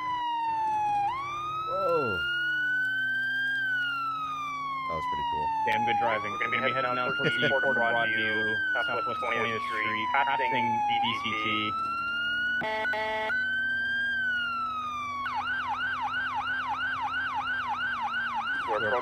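A police siren wails, then switches to a fast yelp.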